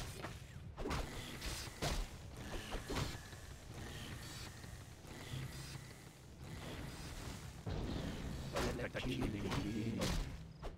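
Magic blasts burst with sharp whooshes.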